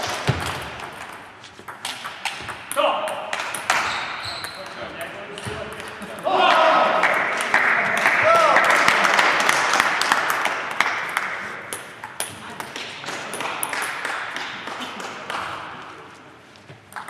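A table tennis ball clicks back and forth on bats and table in an echoing hall.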